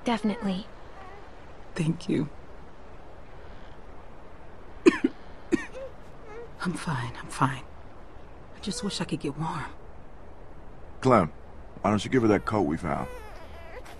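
A young woman speaks weakly and tiredly, close by.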